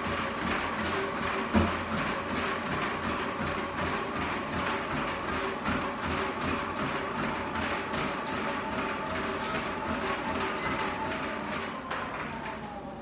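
Feet pound steadily on a treadmill belt.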